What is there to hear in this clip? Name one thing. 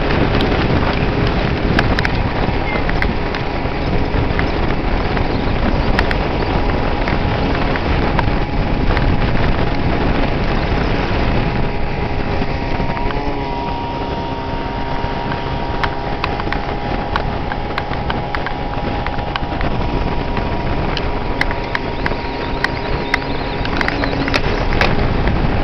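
An outboard motor roars steadily as a boat speeds across the water.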